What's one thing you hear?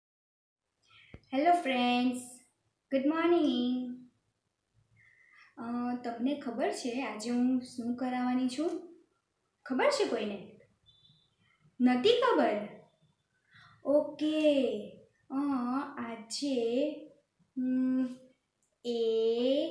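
A young woman speaks clearly and with animation, close to a microphone.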